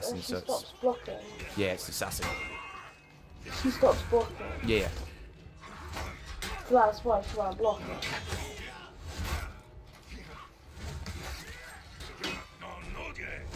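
Steel blades clash and ring in a sword fight.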